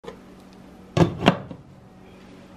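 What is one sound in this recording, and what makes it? A glass lid clinks onto a frying pan.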